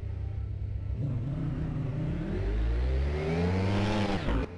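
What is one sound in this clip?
Motorcycle engines buzz in from far off and grow louder as they approach.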